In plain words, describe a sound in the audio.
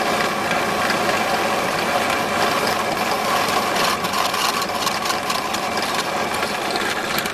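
A drill press bores through a steel pipe.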